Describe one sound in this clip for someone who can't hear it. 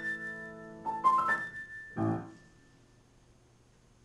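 A piano plays a few final chords that ring out and fade.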